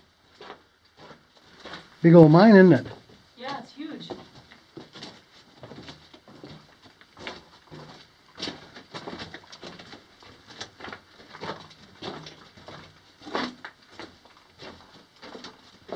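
Footsteps crunch on loose rock and grit.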